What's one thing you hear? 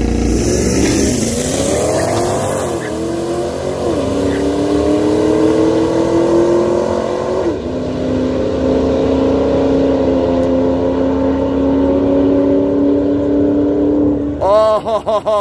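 Two race cars roar away at full throttle, their engines rising in pitch as they speed off into the distance.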